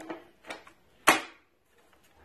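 A battery clicks into a power tool.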